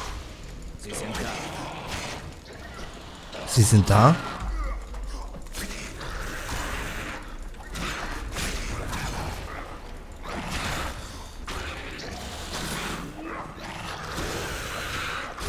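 Blows and clashes of a close fight ring out again and again.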